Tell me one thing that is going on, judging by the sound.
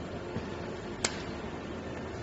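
A pneumatic coupling snaps with a sharp click.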